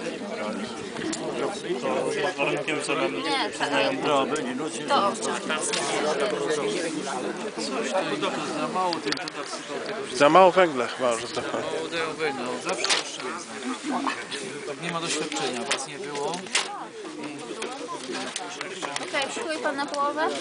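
Sausages sizzle on a hot grill.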